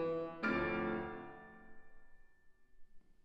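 A piano plays a few notes that ring out in a large echoing hall.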